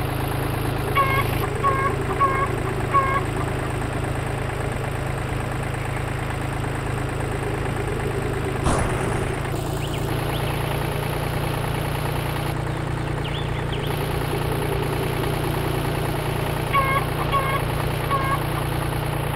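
Chickens squawk in short bursts.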